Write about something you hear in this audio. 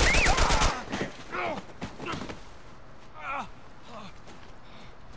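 A man groans and gasps in pain.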